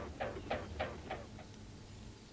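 Water splashes as a swan lands.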